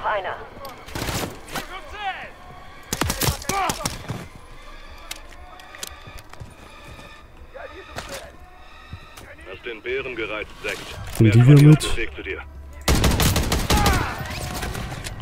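Gunshots crack in quick bursts, close by.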